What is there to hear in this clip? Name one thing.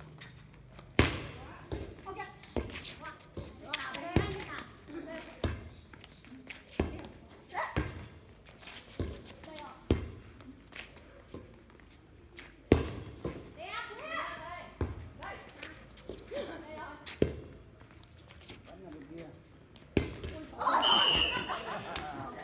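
A volleyball is struck with sharp slaps, again and again.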